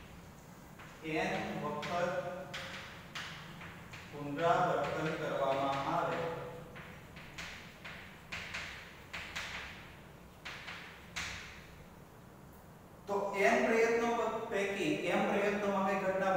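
A man speaks calmly, lecturing.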